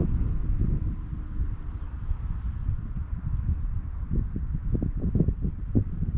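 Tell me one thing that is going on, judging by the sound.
Wind blows and rumbles outdoors in the open.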